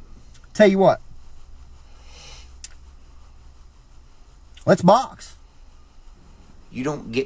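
A man speaks in short, animated bursts over a microphone.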